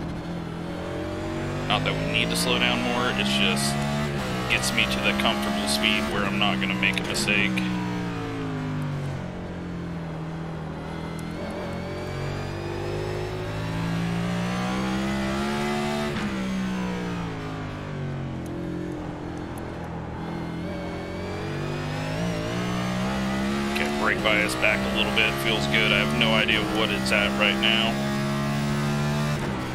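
A racing car engine roars, rising and falling in pitch as it shifts through gears.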